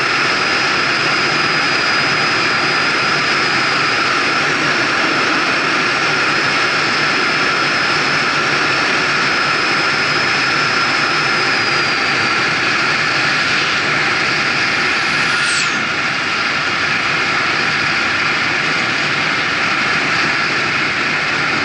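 Tyres hum steadily on asphalt.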